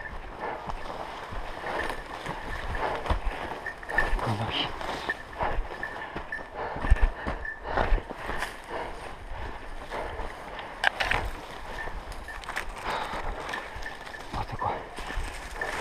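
Branches and brush swish against the walker.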